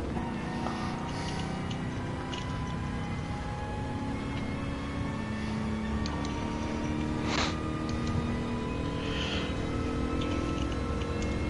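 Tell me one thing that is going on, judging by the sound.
A car engine revs hard and climbs in pitch as the car speeds up.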